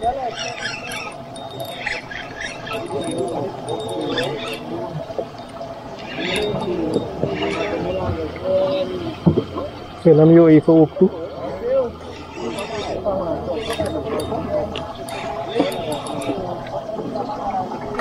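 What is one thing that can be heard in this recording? A fishing reel clicks and whirs as the line is wound in.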